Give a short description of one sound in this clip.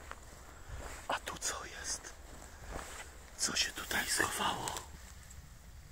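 Dry leaves rustle and crunch underfoot.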